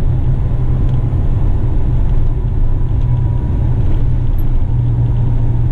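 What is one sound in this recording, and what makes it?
A heavy truck's diesel engine rumbles steadily from inside the cab.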